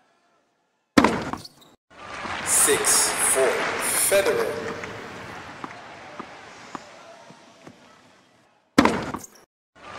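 A tennis ball is struck hard with a racket.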